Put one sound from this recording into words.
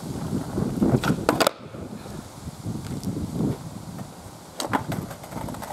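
A skateboard clacks sharply against the ground during a trick.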